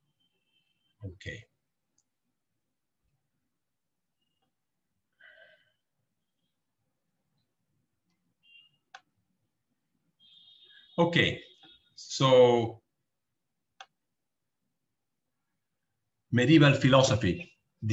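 A middle-aged man speaks calmly over an online call, in short bursts with long pauses.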